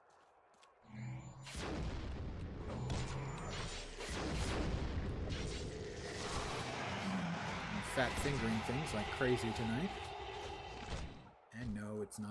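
Game combat effects whoosh and thud.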